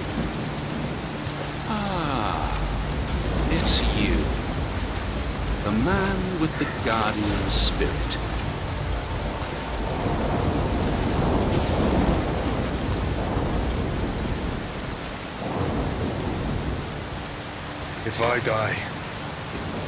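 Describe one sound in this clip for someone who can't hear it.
Rain pours down steadily outdoors.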